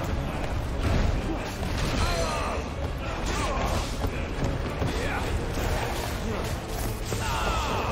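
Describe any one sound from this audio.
Magic blasts crackle and boom in a fierce battle.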